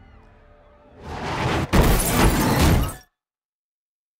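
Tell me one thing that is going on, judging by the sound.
A car crashes with a loud bang as glass shatters.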